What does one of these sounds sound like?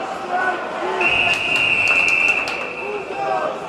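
A referee's whistle blows a long shrill blast.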